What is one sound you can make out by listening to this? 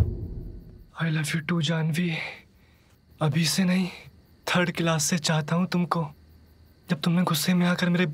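A young man speaks tenderly and with emotion, close by.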